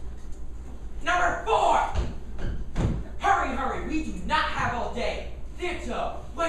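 A second young man speaks loudly across the stage.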